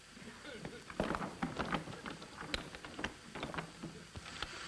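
A man rattles a heavy wooden door.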